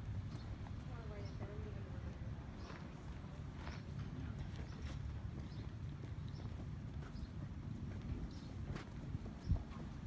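A horse's hooves clop slowly on a paved path.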